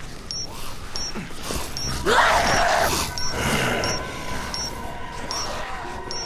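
An electrified weapon hums and crackles.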